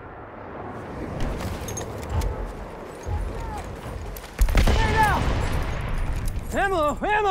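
Explosions and gunfire of a battle rumble in the distance.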